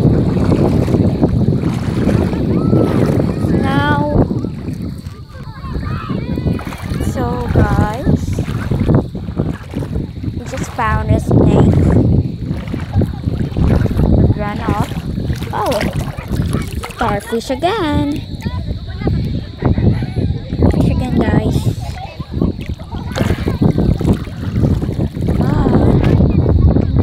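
Shallow water laps and ripples close by.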